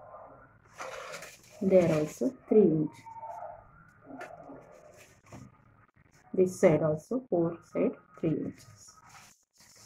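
Paper rustles in a woman's hands.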